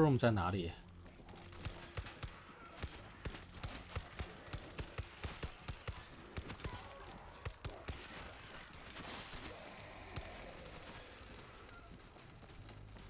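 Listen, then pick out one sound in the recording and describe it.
Footsteps run quickly across a hard, rubble-strewn floor.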